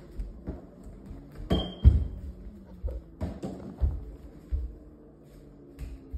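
A balloon thumps as it is kicked around.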